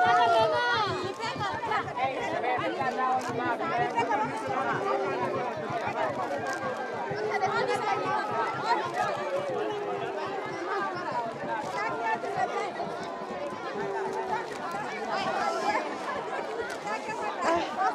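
Children shout and squeal excitedly close by.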